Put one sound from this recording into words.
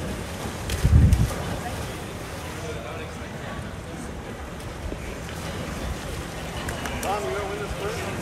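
Water splashes as swimmers move through a pool.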